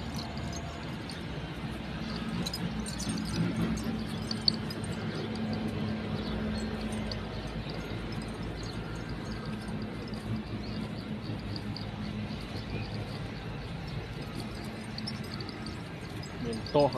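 A cow's hooves shuffle on soft dirt.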